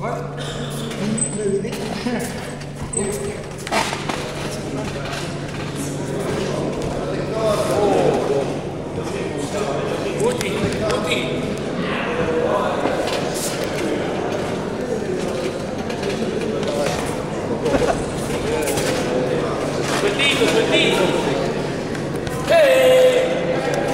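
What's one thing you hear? A man talks with the fighters in a raised voice.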